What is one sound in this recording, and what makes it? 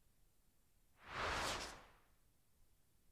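A powerful energy blast whooshes and roars.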